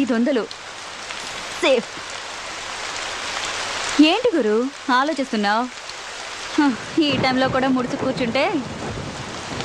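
A young woman speaks playfully nearby.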